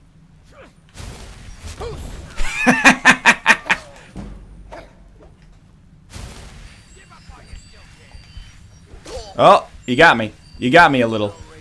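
A fire spell roars and crackles.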